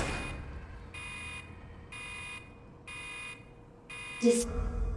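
A machine beeps in steady, evenly spaced pulses.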